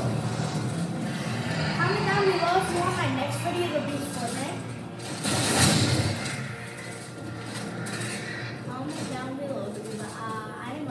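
Gunfire and energy blasts from a video game play through a television speaker.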